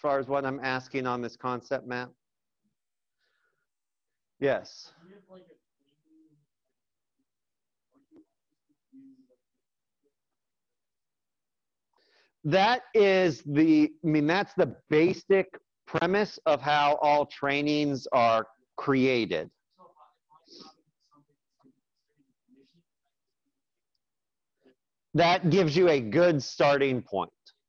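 A man explains calmly through an online call, pausing between phrases.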